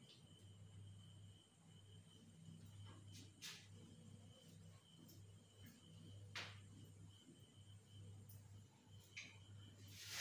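A cloth rubs against a whiteboard, wiping it clean.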